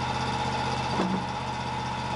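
A wooden board knocks as it is set down.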